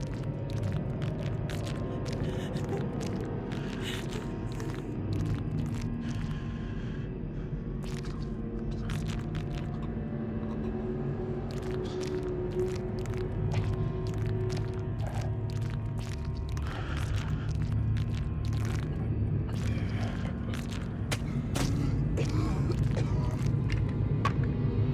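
Footsteps squelch and crunch over wet, littered ground.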